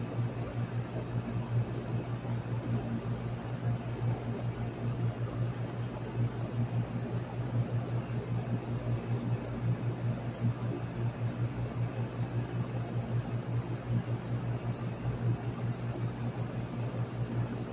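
An outdoor fan unit hums and whirs steadily with a low drone.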